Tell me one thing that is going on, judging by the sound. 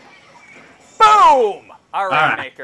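A game character bursts with a wet splat.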